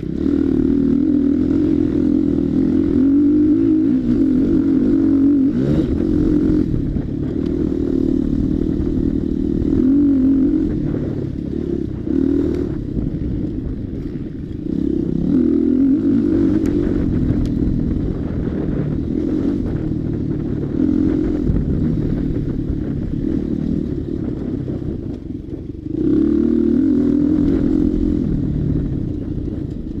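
A dirt bike engine drones close by, rising and falling as the throttle changes.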